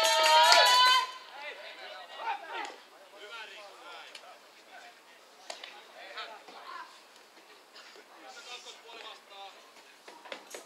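Women chat and call out to one another outdoors, at a distance.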